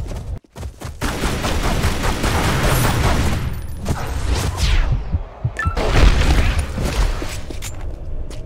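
Pistol shots ring out in rapid bursts.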